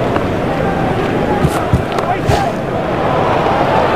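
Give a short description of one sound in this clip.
A cricket bat cracks against a ball.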